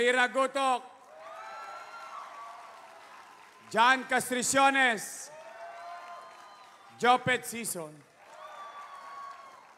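A large crowd cheers and chants in reply.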